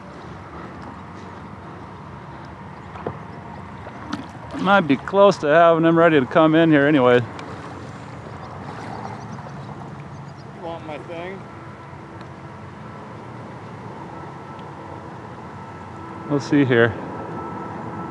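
A fish thrashes and splashes at the water's surface.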